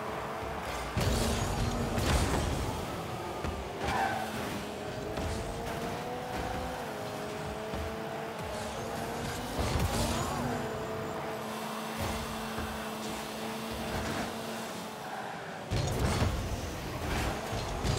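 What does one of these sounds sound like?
A rocket boost roars in bursts.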